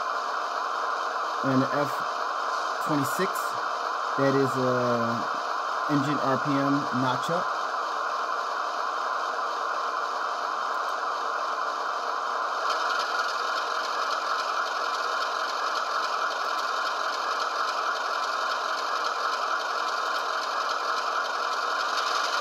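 A model diesel locomotive's engine idles with a steady hum.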